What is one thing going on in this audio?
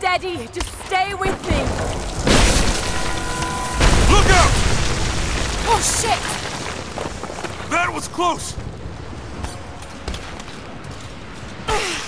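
A young woman grunts and gasps with effort close by.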